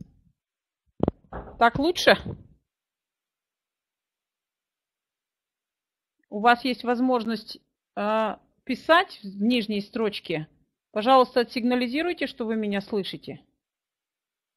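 A middle-aged woman speaks calmly through a headset microphone over an online call.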